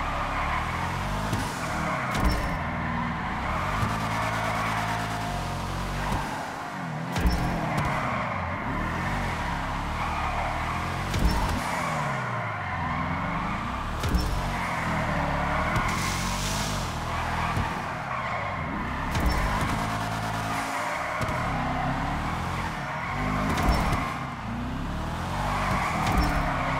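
A car engine revs up and down repeatedly.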